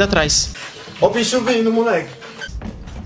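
A young man shouts with excitement close by.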